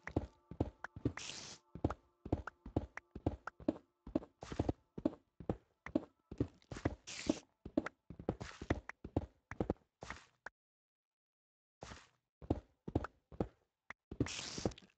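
A pickaxe strikes stone in quick, repeated knocks.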